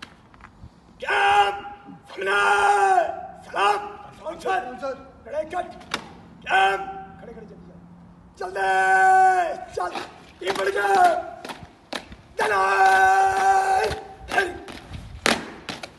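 A man reads out loudly and clearly outdoors.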